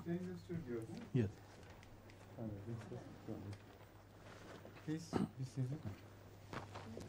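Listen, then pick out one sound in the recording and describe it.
An elderly man speaks calmly nearby.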